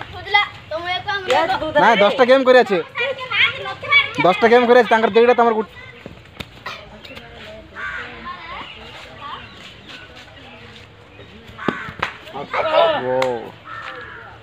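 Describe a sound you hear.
Boys shout and call out excitedly outdoors.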